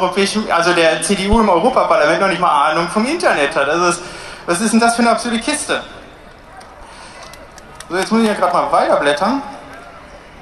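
A young man speaks forcefully into a microphone through loudspeakers outdoors.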